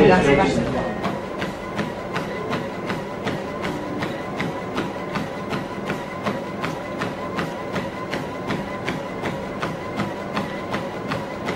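Running feet thud steadily on a treadmill belt.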